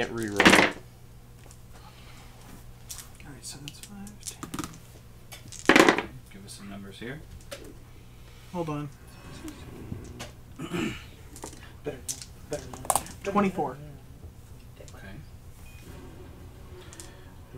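Several men talk and laugh over an online call, heard through their microphones.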